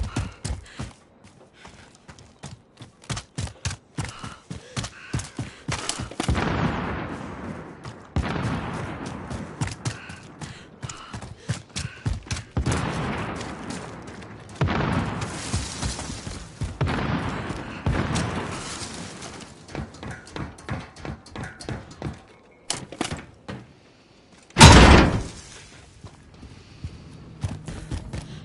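Quick footsteps thud on hard ground.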